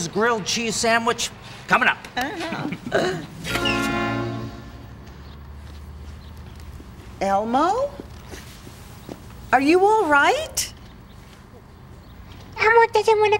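A high-pitched puppet voice speaks excitedly nearby.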